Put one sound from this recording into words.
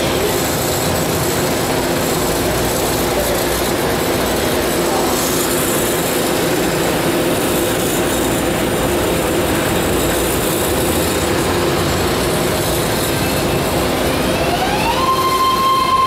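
A subway train hums steadily at a station platform.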